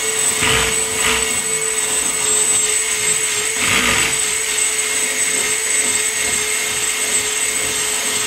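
A small power tool whines as it scours rust from a metal floor.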